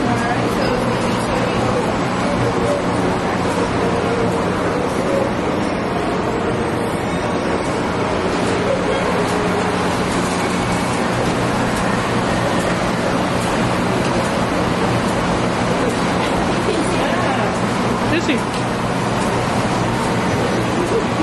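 A crowd of people chatter in a busy indoor space nearby.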